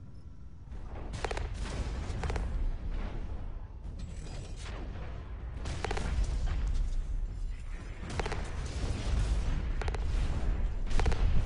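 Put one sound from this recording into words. Heavy metal footsteps thud with a deep, steady rumble.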